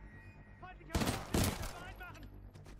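A rifle fires a quick burst of loud shots.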